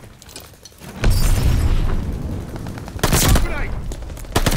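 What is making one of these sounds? A flamethrower roars with a deep whooshing rush of fire.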